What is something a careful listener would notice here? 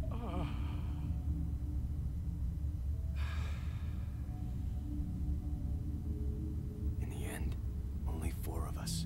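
Low, dark music drones steadily.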